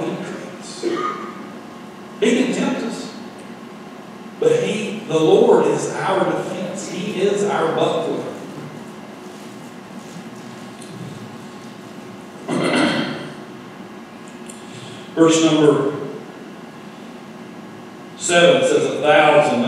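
A middle-aged man speaks calmly through a microphone in a large echoing hall, with pauses.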